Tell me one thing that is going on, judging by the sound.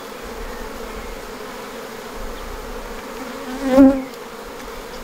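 Honeybees buzz around an open hive.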